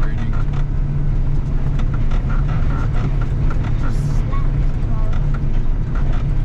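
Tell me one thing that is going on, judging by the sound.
Metal parts rattle and clank as the machine rolls over a bumpy track.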